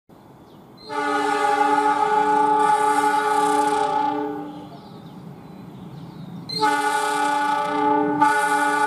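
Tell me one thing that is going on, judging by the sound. A diesel engine rumbles as a train approaches.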